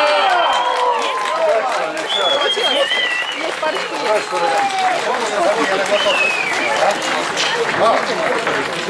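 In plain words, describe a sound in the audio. A crowd of men cheers and shouts loudly.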